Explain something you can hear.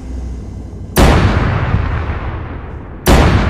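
A heavy cannon fires a loud burst.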